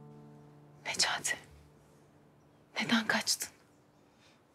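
A young woman speaks softly and urgently up close.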